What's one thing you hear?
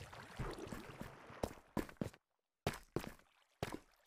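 Lava bubbles and pops.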